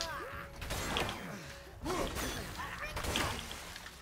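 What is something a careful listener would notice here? A heavy axe whooshes through the air.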